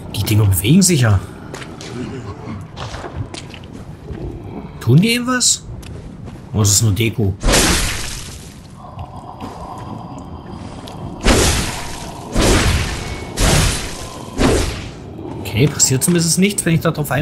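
Footsteps squelch through soft, wet ground.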